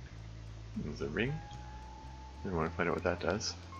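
A young man speaks calmly into a headset microphone.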